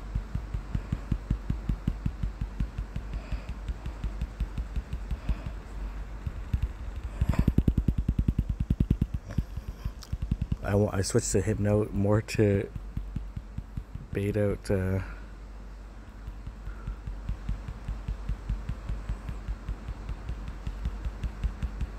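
Electronic game music plays with a steady pulsing beat.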